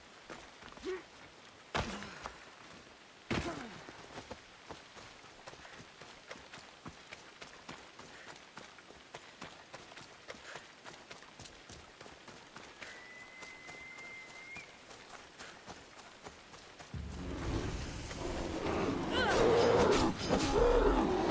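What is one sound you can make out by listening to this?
Footsteps run over dry grass and dirt.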